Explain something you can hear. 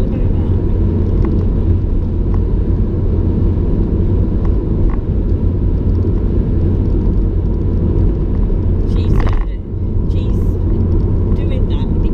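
A car engine hums steadily with a low road rumble from inside the car.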